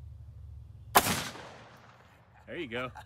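A single gunshot cracks close by and echoes across open ground.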